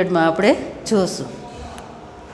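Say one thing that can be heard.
A woman speaks close to a microphone.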